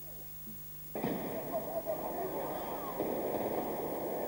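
Firecrackers crackle and bang loudly outdoors.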